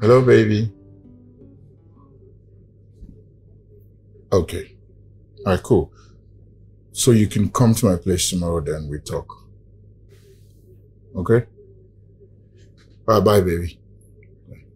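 A man talks on a phone in short bursts, close by.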